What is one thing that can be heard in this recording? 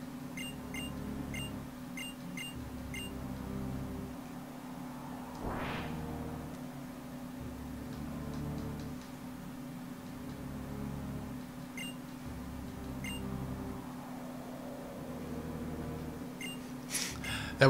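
Short electronic beeps chirp as text advances.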